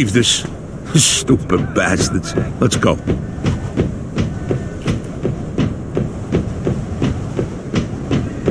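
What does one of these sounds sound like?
Footsteps clatter quickly on metal stairs.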